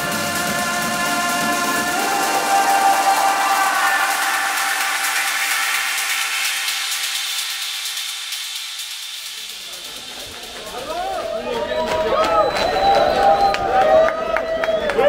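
Loud electronic dance music plays over big speakers.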